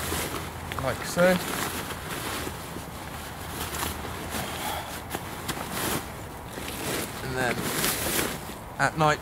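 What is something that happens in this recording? Nylon fabric rustles and crinkles close by.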